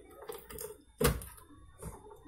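A plug clicks into a wall socket.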